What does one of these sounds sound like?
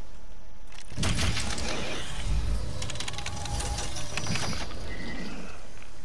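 Gloved hands tap keys on a keypad with short beeps.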